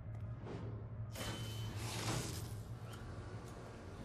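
A metal lever clanks as it is pulled.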